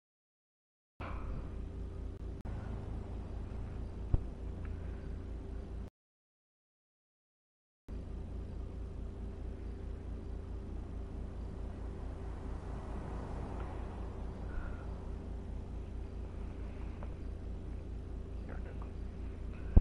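A car engine idles with a low, steady throb.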